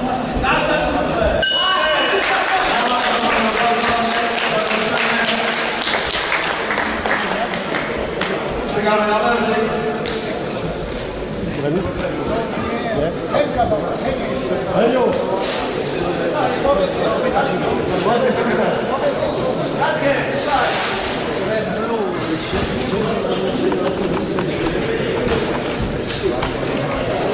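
A crowd murmurs and chatters in an echoing hall.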